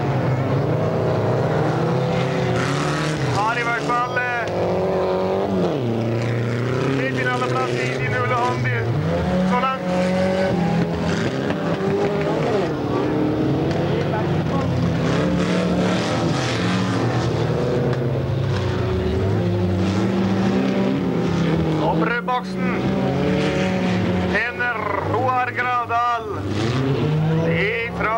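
Racing car engines roar and rev loudly.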